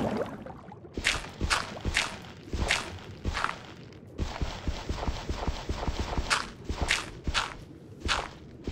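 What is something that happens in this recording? A pickaxe chips at stone in quick, repeated taps.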